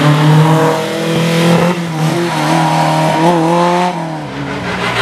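A historic rally car accelerates hard away on tarmac.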